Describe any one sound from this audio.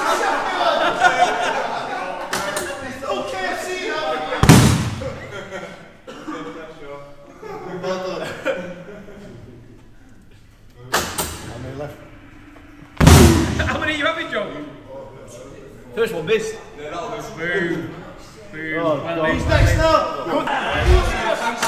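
Men chat and laugh nearby in an echoing hall.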